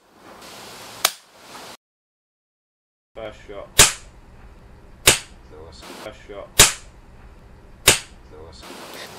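An air pistol fires several sharp shots close by, each with a short ring.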